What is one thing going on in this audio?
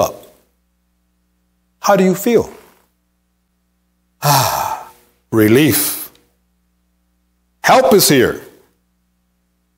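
A middle-aged man preaches with emphasis through a microphone, in short bursts with pauses, in a reverberant hall.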